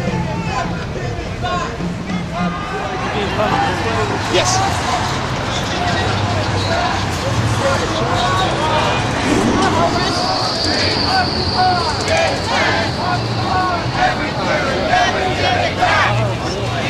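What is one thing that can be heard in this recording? Footsteps of a crowd shuffle along the pavement.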